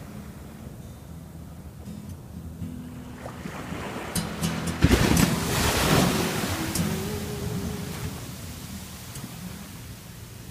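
Waves break and wash up onto a sandy shore.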